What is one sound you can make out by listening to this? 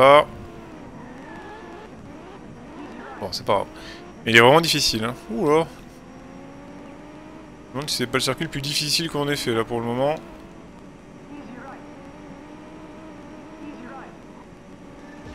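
A rally car engine roars and climbs through the gears.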